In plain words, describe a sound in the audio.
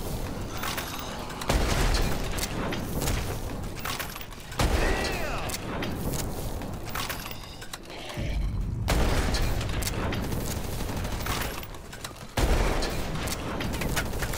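Electric zaps crackle.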